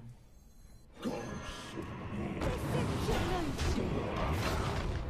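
A magical swirling sound effect plays as a spell is cast.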